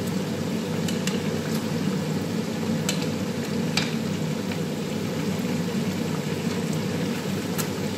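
A metal utensil clinks against a pan.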